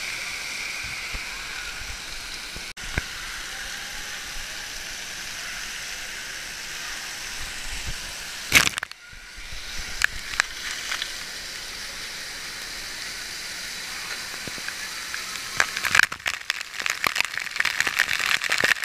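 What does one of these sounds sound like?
Water sprays and splashes steadily in a large echoing hall.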